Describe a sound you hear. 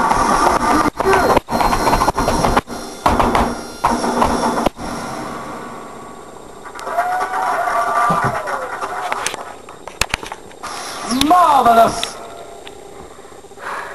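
Video game music and sound effects play from a television in the room.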